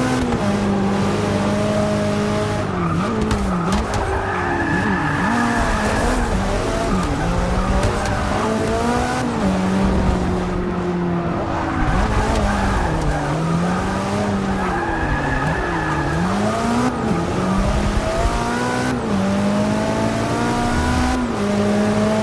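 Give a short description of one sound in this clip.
A powerful car engine roars loudly, rising and falling in pitch as it shifts gears.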